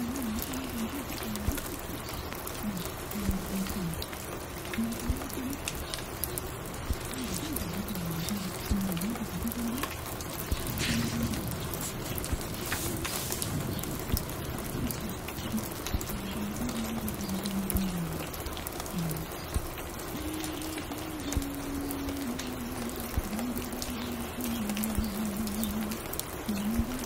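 A vinyl record crackles softly as it plays on a turntable.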